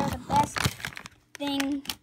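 A crisp packet crinkles in a hand.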